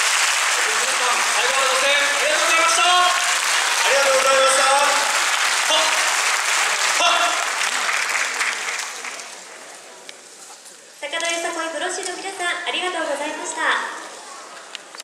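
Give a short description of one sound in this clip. A group of women and men chant together loudly in a large hall.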